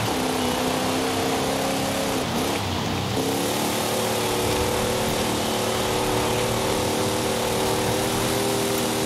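Tyres hiss on the road surface.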